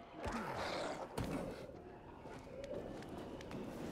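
Hands grab and scrape along wooden ledges while climbing.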